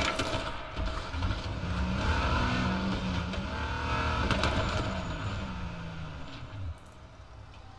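A car engine revs and rumbles.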